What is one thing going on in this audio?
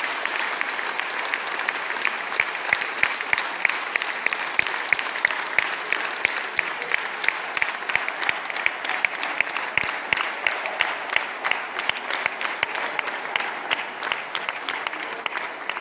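An audience claps in rhythm in a large hall.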